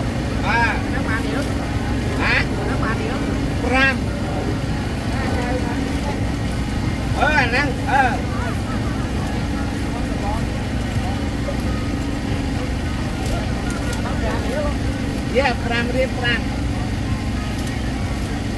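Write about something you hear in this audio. A low, steady outdoor murmur runs throughout.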